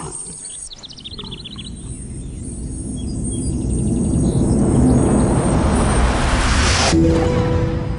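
A magical shimmering whoosh swells louder and then cuts off.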